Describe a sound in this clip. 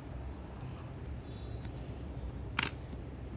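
A small metal coin clicks sharply.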